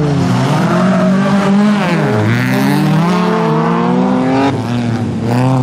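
Tyres skid and scrabble on loose gravel.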